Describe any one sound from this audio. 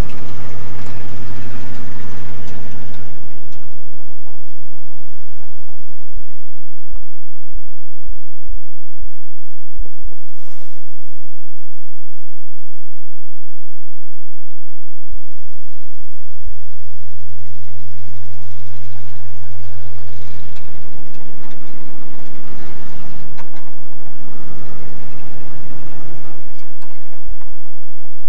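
A pickup truck engine rumbles and revs.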